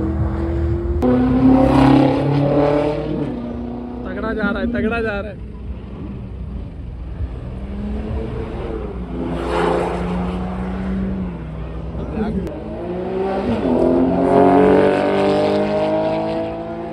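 Car engines rev loudly and roar.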